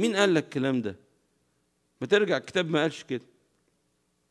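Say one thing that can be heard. A middle-aged man speaks calmly and with emphasis into a microphone, in short phrases.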